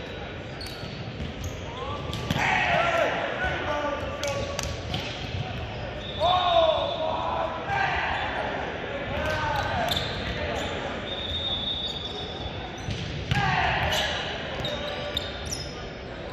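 A volleyball smacks against hands.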